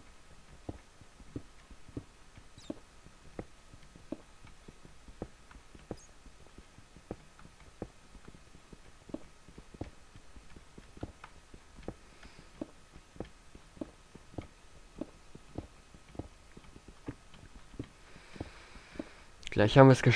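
A pickaxe chips at stone blocks with quick, regular knocks.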